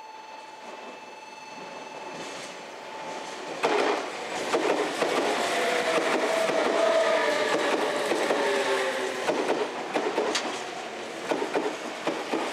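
A train approaches and rumbles past close by.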